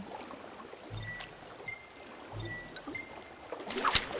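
Soft electronic menu chimes beep a few times.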